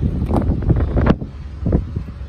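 A car door latch clicks and the door opens.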